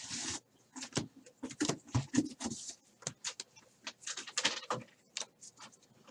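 Trading cards slide and flick against each other in someone's hands.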